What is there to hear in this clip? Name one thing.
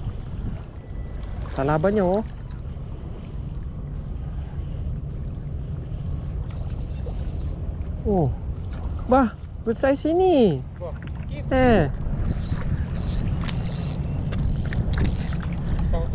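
A fishing reel whirs softly as its handle is wound.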